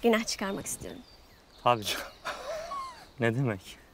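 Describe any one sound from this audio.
A young woman speaks softly and politely.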